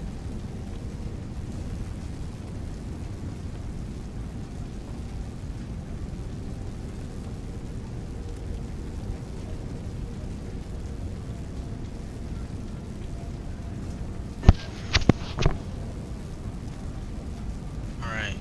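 Fires crackle and rumble steadily nearby.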